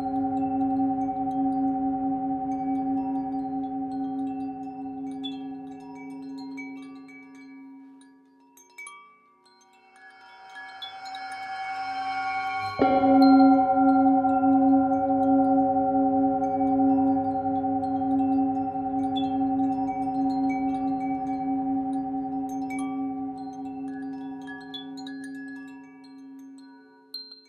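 A singing bowl hums with a steady, ringing tone as a mallet rubs its rim.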